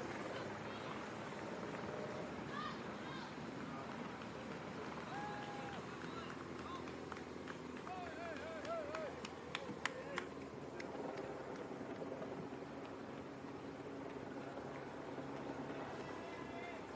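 A crowd of spectators murmurs outdoors.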